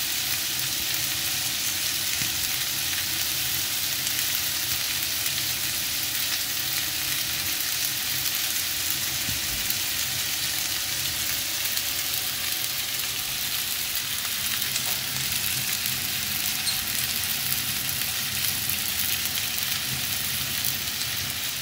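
Steaks sizzle and crackle steadily in a hot pan.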